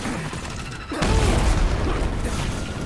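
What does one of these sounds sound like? A fire bursts with a loud roaring blast.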